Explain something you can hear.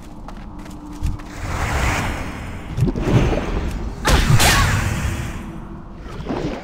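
Spell blasts crackle and burst in combat.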